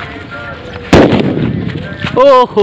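A firecracker bangs loudly outdoors.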